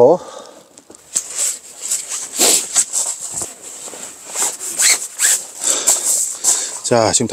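Fabric rustles and swishes as a mat is shaken out.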